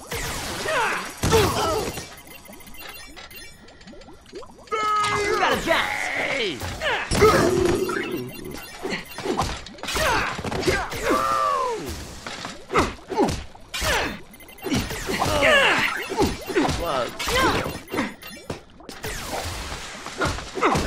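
Punches and blasts land with sharp impacts.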